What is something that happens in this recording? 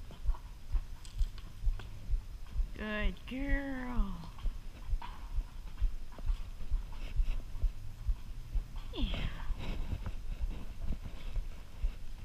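A horse's hooves thud steadily on soft dirt at a walk.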